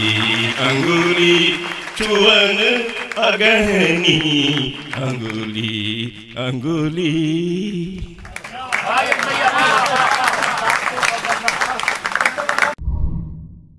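An audience claps and cheers loudly.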